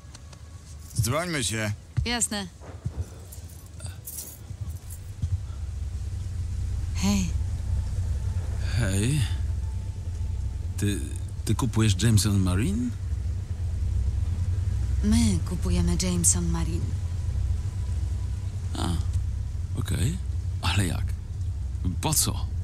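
A younger man talks with animation.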